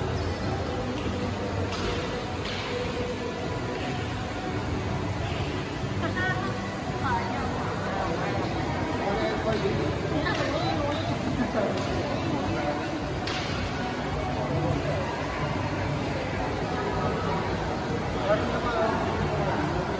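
Many people chatter and murmur in a large echoing hall.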